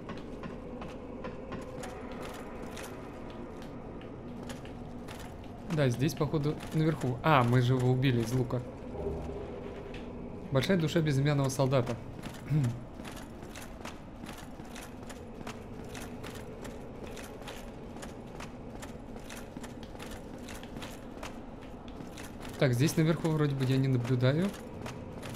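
Armored footsteps clank steadily on stone.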